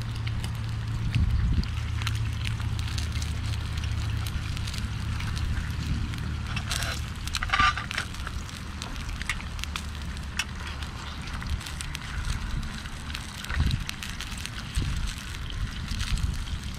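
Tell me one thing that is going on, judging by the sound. Eggs and bacon sizzle and crackle in a pan.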